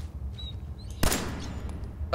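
A pistol fires a single loud shot.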